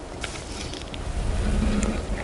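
A huge boulder rolls and rumbles closer.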